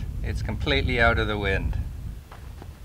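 A man speaks outdoors.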